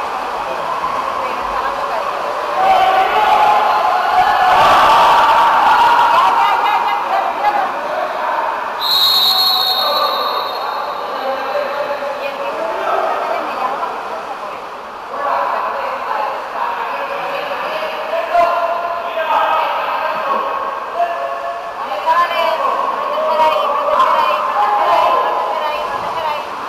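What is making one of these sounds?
Water splashes as swimmers thrash about in a pool.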